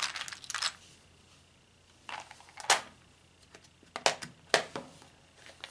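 A plastic box clacks as it is tapped and set down.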